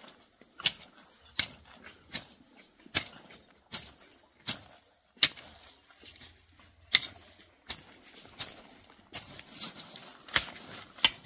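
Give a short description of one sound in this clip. A hoe chops into soil in steady, repeated strokes.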